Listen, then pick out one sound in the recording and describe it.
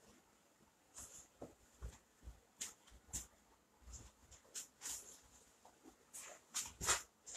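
Footsteps approach on a hard floor.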